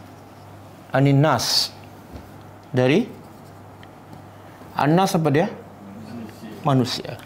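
A man speaks in short bursts with a clear, drawn-out voice, nearby.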